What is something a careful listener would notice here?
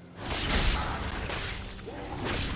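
Magic blasts whoosh and burst in a fight.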